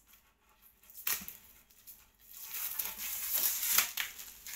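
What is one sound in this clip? A cardboard tube rustles and crackles as it is twisted.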